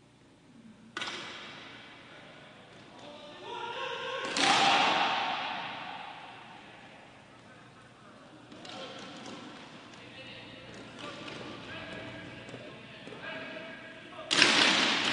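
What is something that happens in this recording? A group of young players shout a team chant together in a large echoing hall.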